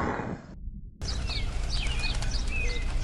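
Birds chirp overhead.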